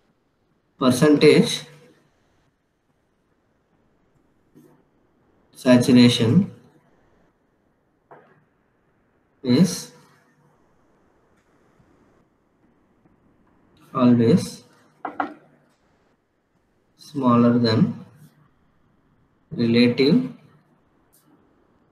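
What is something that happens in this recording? A young man speaks calmly in short phrases through a microphone, with pauses between.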